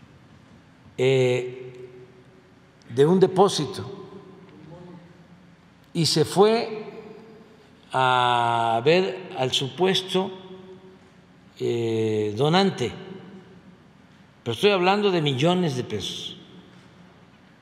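An elderly man speaks emphatically into a microphone, in bursts with pauses.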